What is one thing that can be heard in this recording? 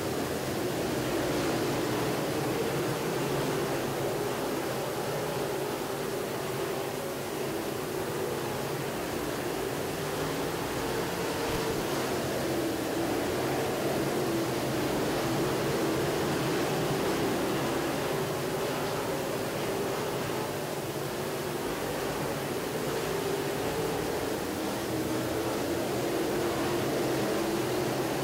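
Race car engines roar loudly and steadily.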